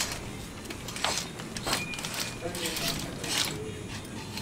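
Clothes hangers rattle on racks.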